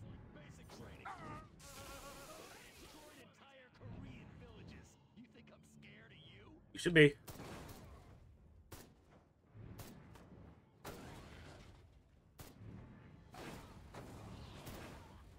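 A laser weapon zaps in short bursts.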